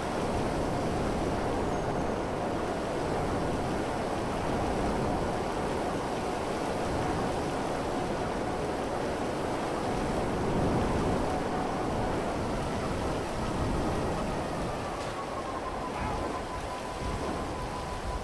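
A jet engine roars steadily as a hoverbike flies along.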